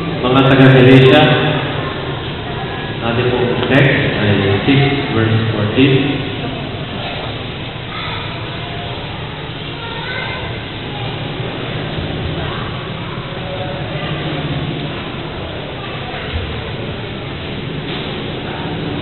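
A man reads aloud through a microphone in an echoing hall.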